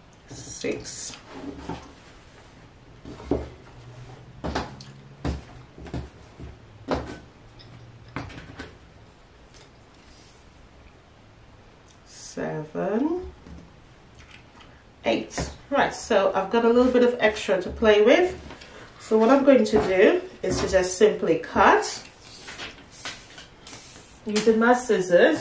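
Fabric rustles and crinkles as it is smoothed and folded.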